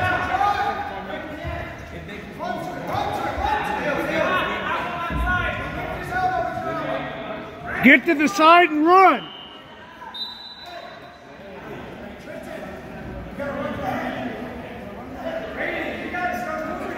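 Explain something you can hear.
Spectators talk and shout in a large echoing gym.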